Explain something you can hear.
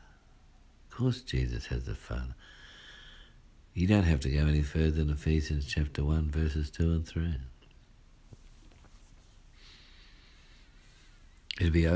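A man speaks close by in a calm voice.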